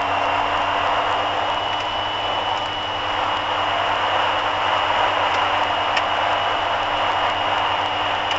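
Tyres rumble steadily on a snowy road.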